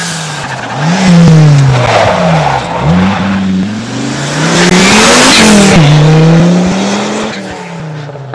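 A rally car engine revs hard and roars past close by, rising and falling as the driver shifts gears.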